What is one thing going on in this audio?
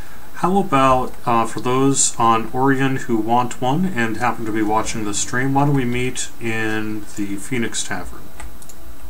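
A man talks into a microphone with animation, close up.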